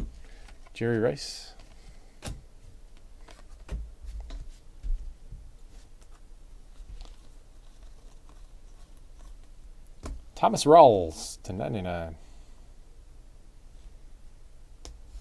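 Trading cards flick and rustle as they are handled and shuffled.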